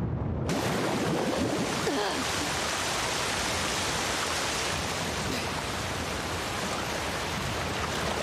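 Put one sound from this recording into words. Water splashes around a person wading through it.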